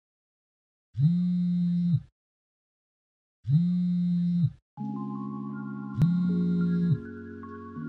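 A mobile phone rings with a loud melodic tone.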